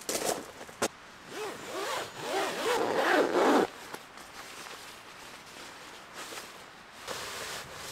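A nylon sleeping bag swishes and crinkles as it is rolled up.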